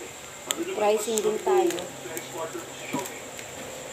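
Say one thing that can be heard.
A plastic bag crinkles in a woman's hands.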